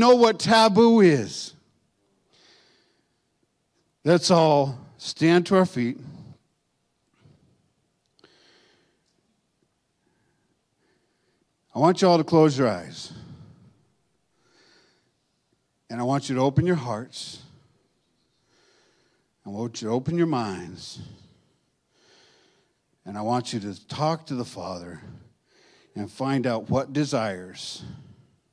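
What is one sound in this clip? An older man speaks calmly into a microphone, with long pauses between phrases.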